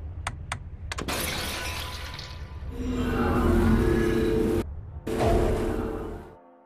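A deep magical whoosh swells and swirls, rising to a roar.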